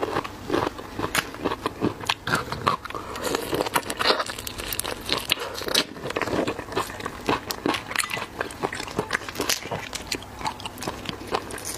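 Prawn shells crunch and crack between fingers close up.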